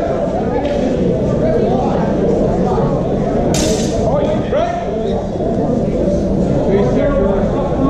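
Practice swords clash as two fighters spar.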